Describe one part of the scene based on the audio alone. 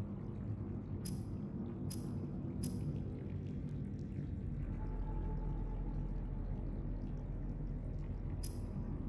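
Short electronic blips sound from a game menu as items are selected.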